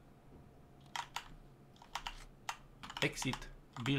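A hard case lid clicks open.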